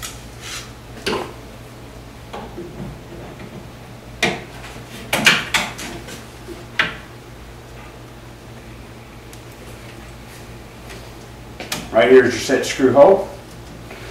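A metal drawer slide clicks and rattles.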